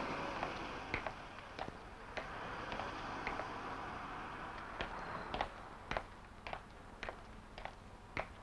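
Footsteps tap on a pavement.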